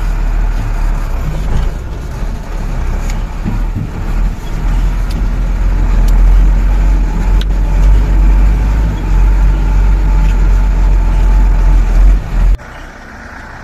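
Tyres crunch and bump over loose stones.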